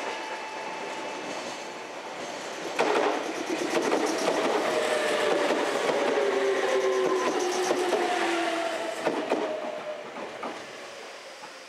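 A second train rumbles past on a nearby track.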